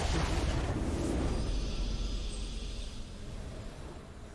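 A triumphant fanfare swells.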